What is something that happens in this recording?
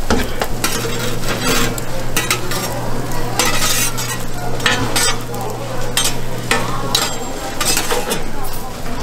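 A metal spatula scrapes and taps on a griddle.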